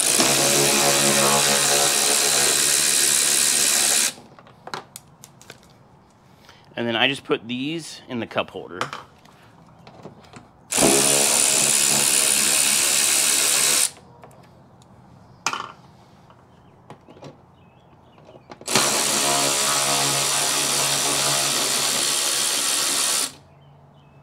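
A cordless drill whirs steadily in bursts.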